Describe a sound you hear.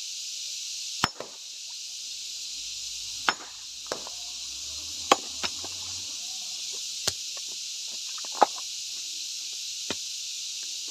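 A hammer strikes a large rock with sharp, ringing blows every couple of seconds.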